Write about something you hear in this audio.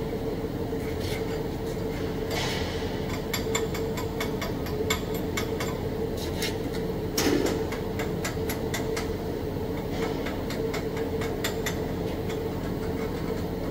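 Sparks pop and snap sharply while welding.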